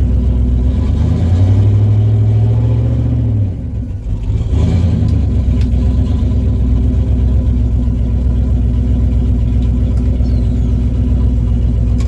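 A car engine revs up and drops back, then roars as the car pulls away.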